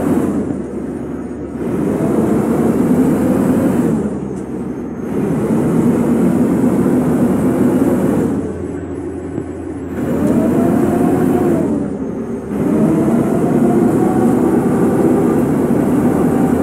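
A bus engine drones and revs up, dropping briefly with each gear change.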